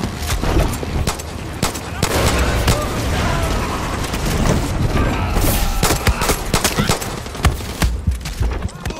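Pistol shots crack sharply, one after another.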